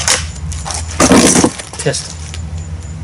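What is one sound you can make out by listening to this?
An air rifle is cocked with a loud clack.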